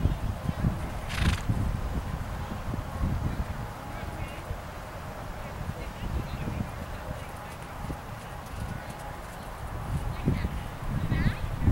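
A horse's hooves thud softly and rhythmically on sand.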